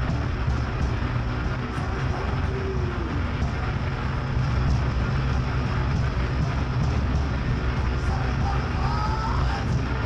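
Drums and cymbals crash along with the band.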